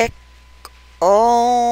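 A woman chants a long drawn-out tone.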